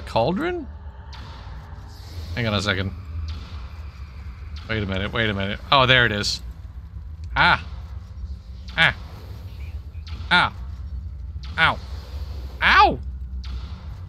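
Magic spells burst with short ringing whooshes, again and again.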